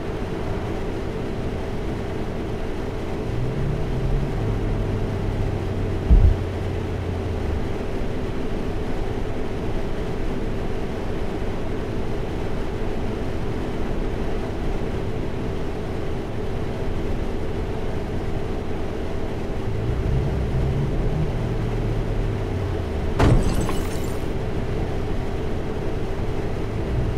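A bus engine hums steadily while idling and creeping forward in traffic.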